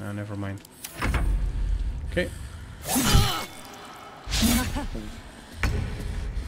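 Magic spells burst and crackle in a fight.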